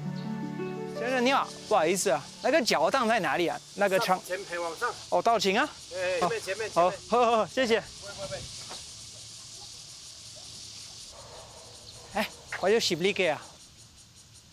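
An elderly man talks with animation outdoors.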